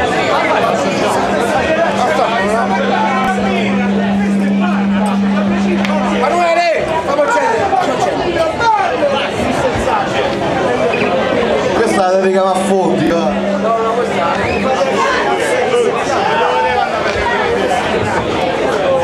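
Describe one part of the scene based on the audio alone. A band plays loud music with electric guitar and drums in a small echoing room.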